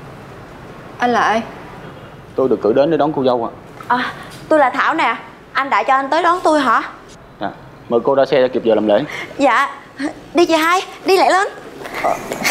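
A young woman speaks firmly, close by.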